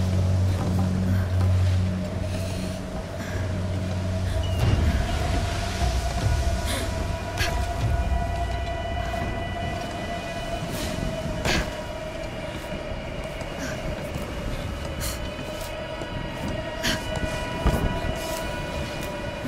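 Strong wind blows steadily outdoors.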